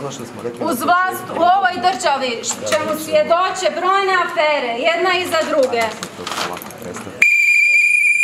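A woman shouts loudly nearby.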